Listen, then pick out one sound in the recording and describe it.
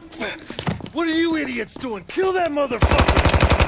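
A man shouts urgently.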